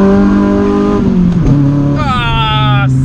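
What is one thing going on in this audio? A car engine drops in pitch.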